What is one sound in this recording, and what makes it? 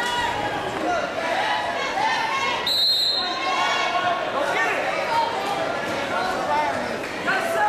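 A crowd chatters and calls out throughout a large echoing gym.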